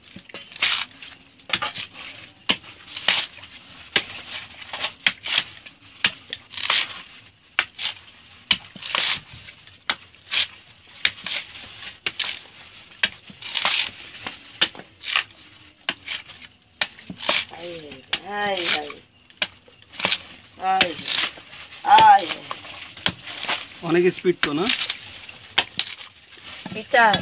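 A machete chops into a coconut husk with repeated sharp whacks.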